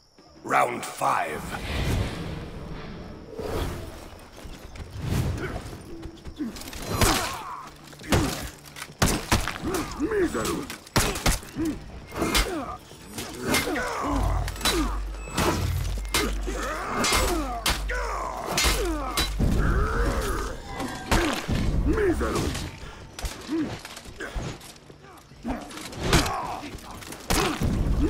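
Swords clash and clang in quick blows.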